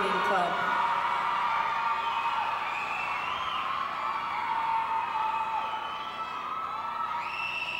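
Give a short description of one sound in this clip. Music plays through loudspeakers in a large echoing hall.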